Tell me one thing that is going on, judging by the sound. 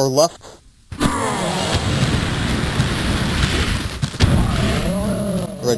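A flamethrower roars with a loud rushing blast.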